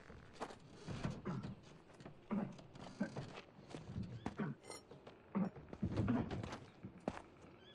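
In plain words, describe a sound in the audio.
Footsteps crunch on the ground as a man walks.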